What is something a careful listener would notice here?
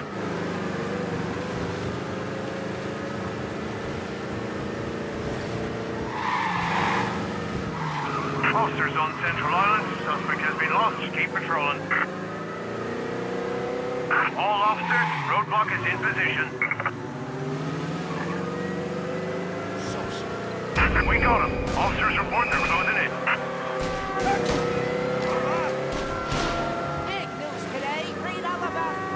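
A car engine hums steadily, rising and falling in pitch as the car speeds along.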